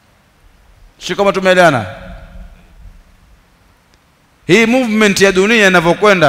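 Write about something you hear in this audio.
A man speaks with animation into a headset microphone.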